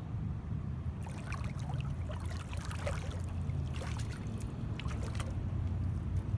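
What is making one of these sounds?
Water splashes and bubbles close by.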